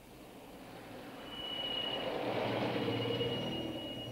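A car approaches with its engine growing louder.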